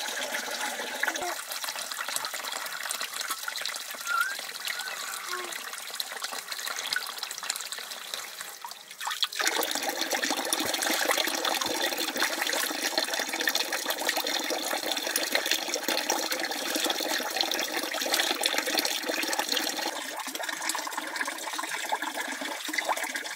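Water pours and splashes into a metal bowl.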